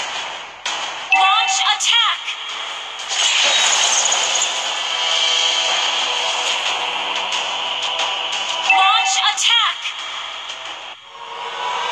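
Swords clash and magic blasts crackle in quick bursts.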